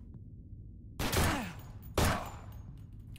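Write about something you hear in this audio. A pistol fires two sharp shots.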